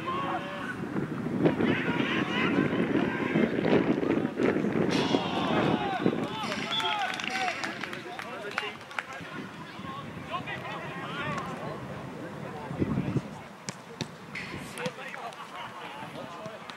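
Players shout to each other across an open pitch outdoors.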